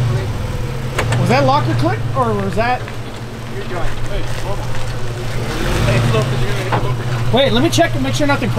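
Tyres grind and crunch over rocks.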